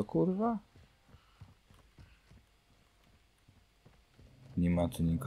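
Footsteps patter quickly on hard ground.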